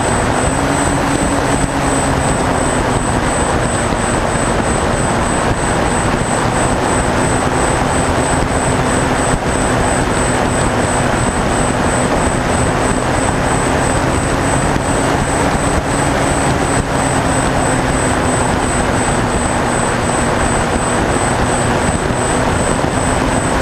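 Wind roars past the plane.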